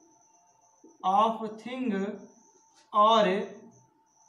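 A man speaks calmly nearby, in short phrases.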